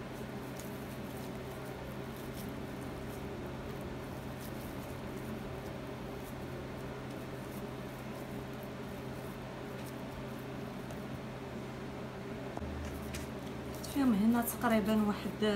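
Hands softly pat and roll sticky dough.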